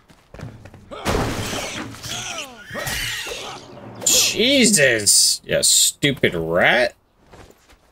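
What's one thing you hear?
A small creature shrieks in pain.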